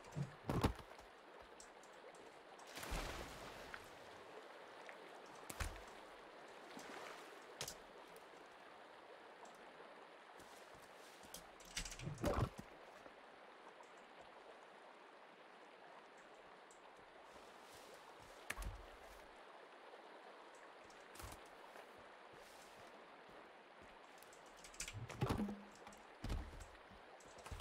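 Wooden logs knock and thud as they are picked up.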